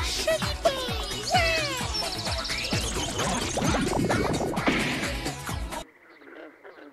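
Sharp game attack sounds whoosh and strike loudly.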